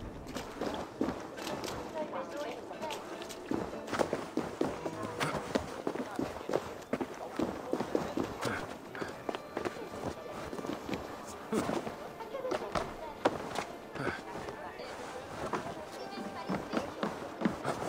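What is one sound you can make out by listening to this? Footsteps thud on stone and wooden boards.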